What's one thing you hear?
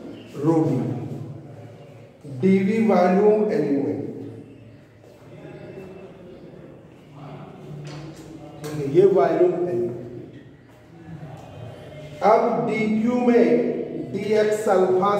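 A middle-aged man speaks steadily, as if teaching, in a room with some echo.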